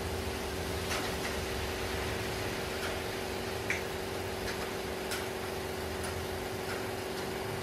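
An espresso machine hums steadily.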